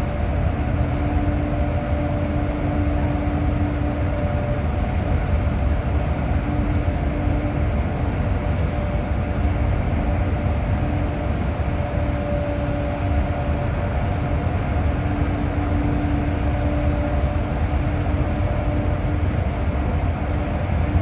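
Traffic rumbles and roars through an echoing tunnel.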